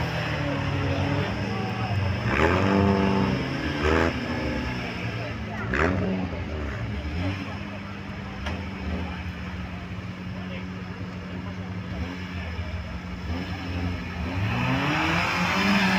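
An off-road vehicle's engine revs hard and steadily.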